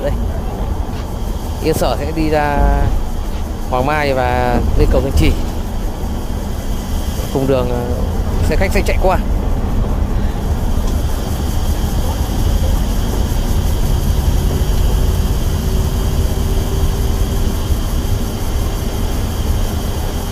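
Tyres hum on a highway.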